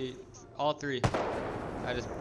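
A sniper rifle fires with a sharp crack.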